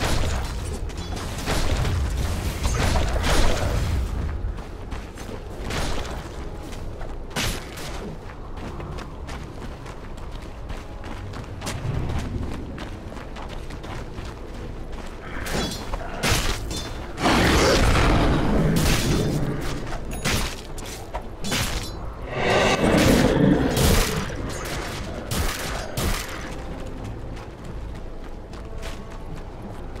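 Game sound effects of spells and fighting burst and clash.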